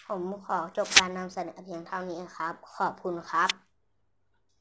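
A young boy speaks brightly and clearly, close by.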